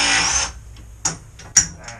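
Sharp knocks sound on wood.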